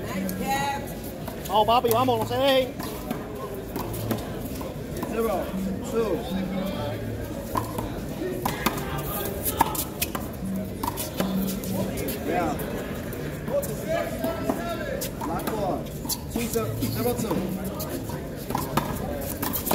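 Men talk and call out loudly outdoors.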